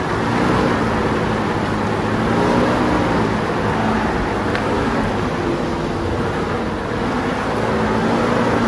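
An engine hums steadily.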